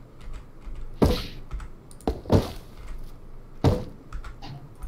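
A hammer strikes a wooden frame with sharp knocks.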